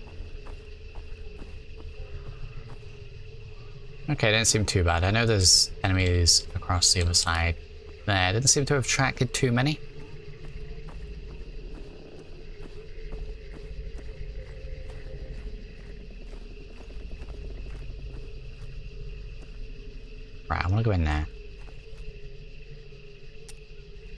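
Footsteps tread steadily on the ground.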